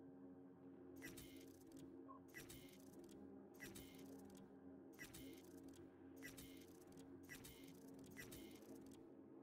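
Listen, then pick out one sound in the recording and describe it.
Short electronic menu blips sound repeatedly.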